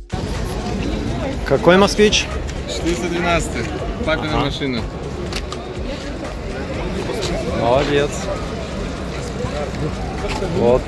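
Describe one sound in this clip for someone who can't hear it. People chat nearby outdoors.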